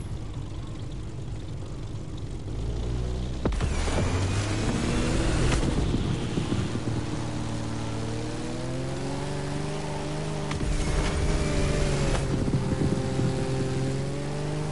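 A propeller plane engine drones and rises in pitch as it speeds up.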